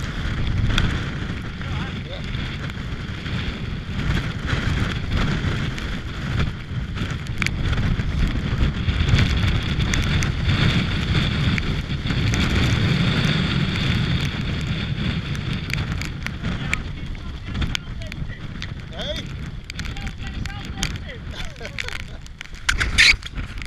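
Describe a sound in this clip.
Rain patters against a microphone close by.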